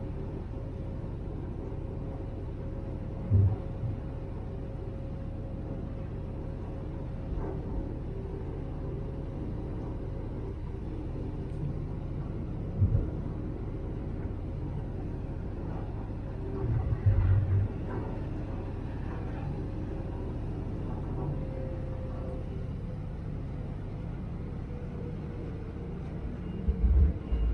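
A boat's engine rumbles steadily.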